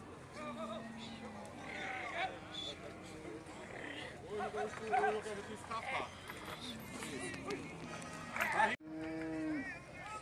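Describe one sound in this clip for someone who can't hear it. Cattle moo nearby.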